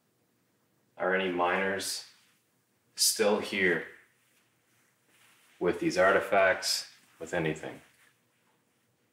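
A man speaks aloud.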